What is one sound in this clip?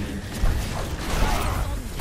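A hammer swings and slams with heavy thuds.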